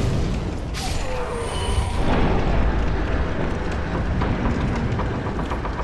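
A heavy wooden door grinds and rumbles as it is pushed open.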